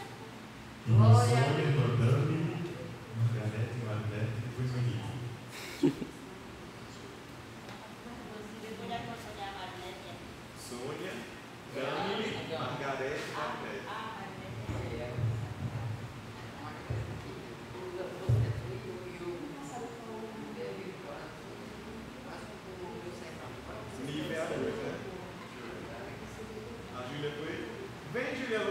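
A man speaks with animation into a microphone in an echoing room.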